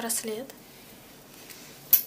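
A paper card rustles as hands handle it.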